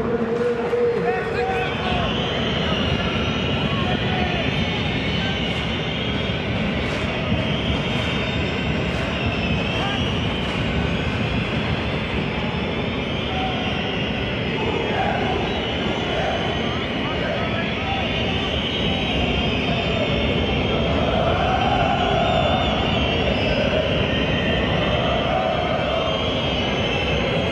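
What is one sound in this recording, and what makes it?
A large stadium crowd chants and roars steadily throughout.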